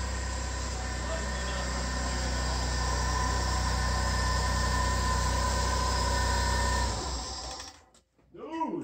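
A car engine idles with a steady hum, then shuts off.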